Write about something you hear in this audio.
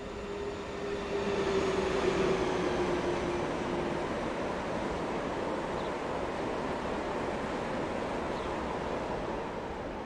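A long freight train rumbles and clatters past on the tracks.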